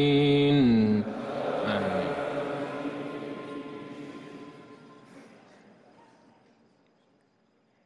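A large crowd of men murmurs in unison in a vast echoing hall, then fades to silence.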